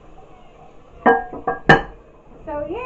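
A porcelain lid clunks down onto a toilet tank.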